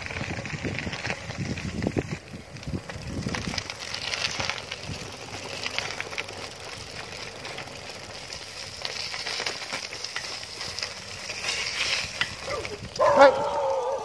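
Bicycle tyres crunch over a gravel road.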